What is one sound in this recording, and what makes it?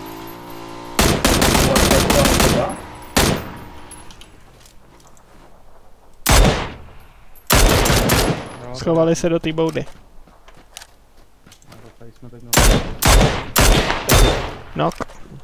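Gunshots fire in loud bursts and single cracks.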